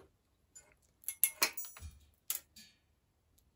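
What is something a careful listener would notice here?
Metal bicycle parts click and clink as they are handled.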